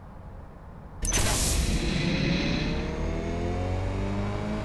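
Tyres screech as a car spins its wheels.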